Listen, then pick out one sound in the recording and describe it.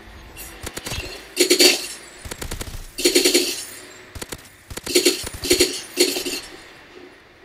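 A rifle fires short rapid bursts of shots.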